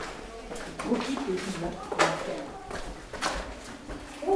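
Footsteps scuff on a hard floor in an echoing tunnel.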